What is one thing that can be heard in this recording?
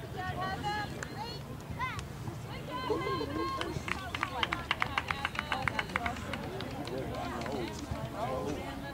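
Young players call out to each other across an open field, far off.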